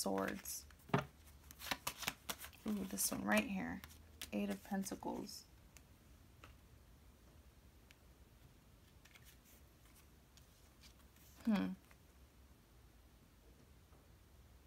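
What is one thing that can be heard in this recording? Cards rustle and slap softly as hands handle them.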